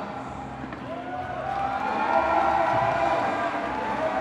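A crowd cheers and shouts, growing louder.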